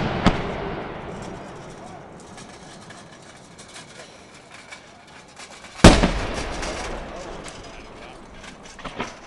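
Firework sparks crackle and pop in the air.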